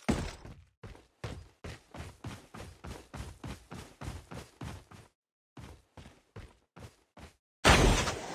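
Footsteps thud quickly and evenly on grass.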